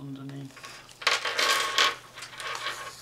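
Stiff paper and fabric rustle as they are handled.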